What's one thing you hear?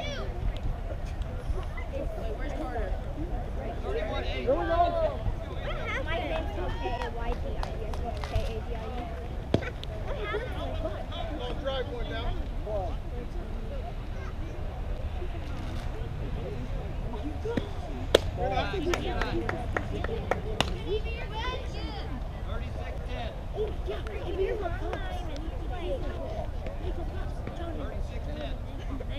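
Players and spectators call out and cheer across an open field.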